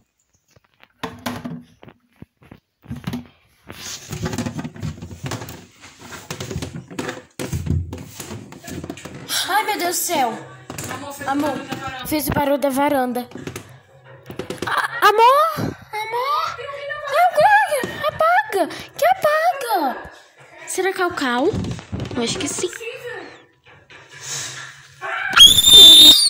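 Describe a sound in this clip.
A young girl talks with animation close to the microphone.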